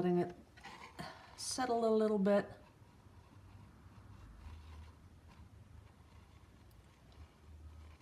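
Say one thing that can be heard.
Thick paint pours slowly from a cup.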